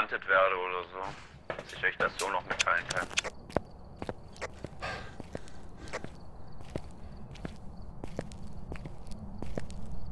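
Footsteps tap steadily on a hard path.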